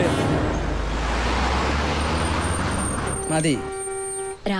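A car engine rumbles as a car pulls up.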